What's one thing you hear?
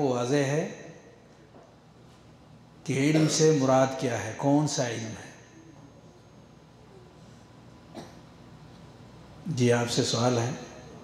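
A man speaks slowly and calmly into a close microphone, with long pauses.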